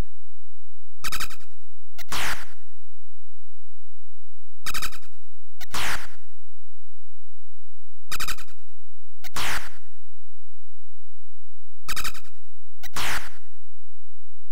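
Short electronic beeps and chirps from a retro computer game sound in pairs.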